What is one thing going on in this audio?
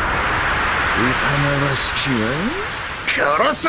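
A man speaks in a low, gloating voice.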